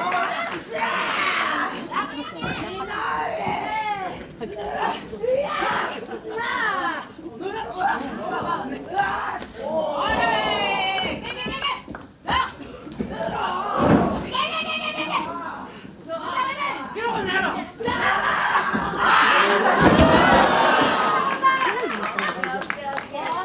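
A crowd shouts and cheers loudly in a large echoing hall.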